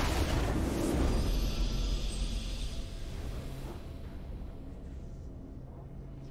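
A triumphant fanfare swells and fades.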